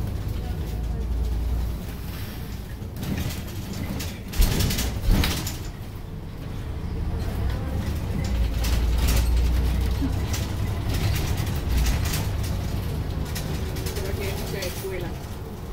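A bus engine rumbles low and steady while driving.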